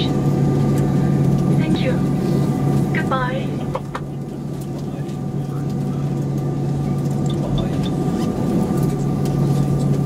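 A jet engine hums steadily inside an aircraft cabin.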